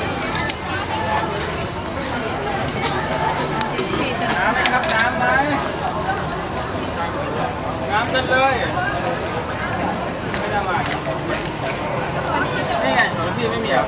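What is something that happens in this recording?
A spoon scrapes and taps inside a coconut shell.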